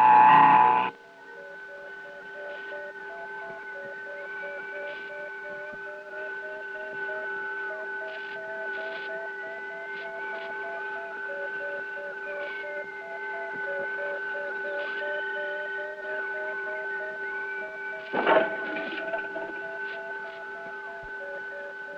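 An electronic device beeps in a quick, uneven repeating pattern.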